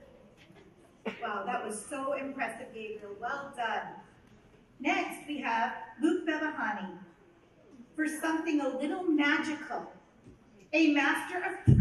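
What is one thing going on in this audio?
A woman speaks calmly into a microphone over loudspeakers, reading out.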